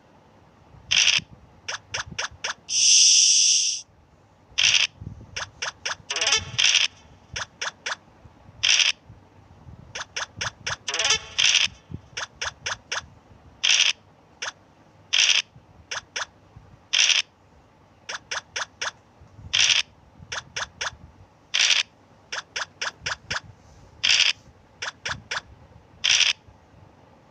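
Dice rattle as they roll, over and over.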